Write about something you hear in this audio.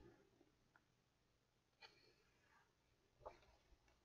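A page of paper turns with a soft rustle.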